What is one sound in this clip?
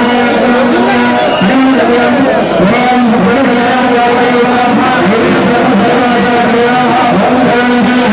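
A man chants loudly through a microphone.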